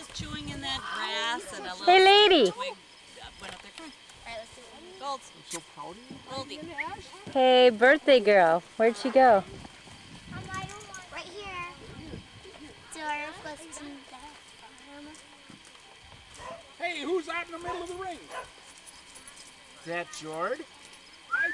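A young girl talks and calls out excitedly nearby.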